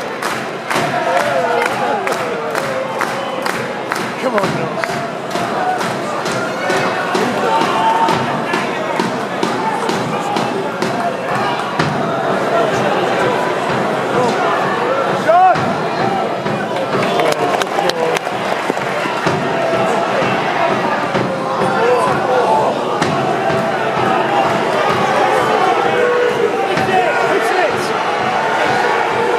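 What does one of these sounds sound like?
A crowd of men chants and shouts loudly nearby, outdoors.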